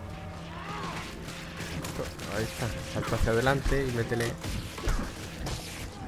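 Weapons strike and magic effects crackle in a fight with a large creature.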